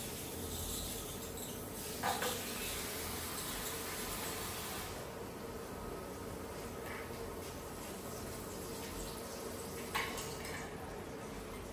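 Hands rub and squish wet hair.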